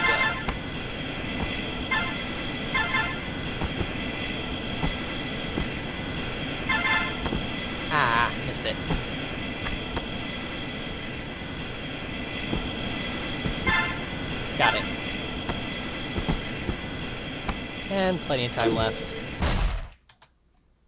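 Electronic game music plays steadily, then suddenly stops.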